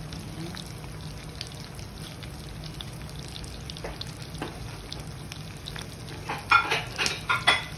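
Small whole fish sizzle and pop as they fry in hot oil in a pan.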